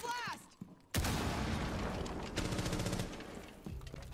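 A rifle fires in a burst of shots.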